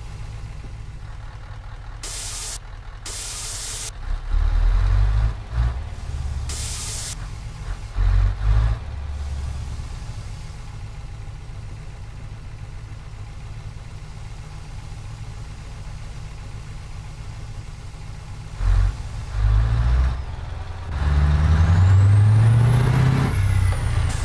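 Truck tyres crunch over a rough dirt track.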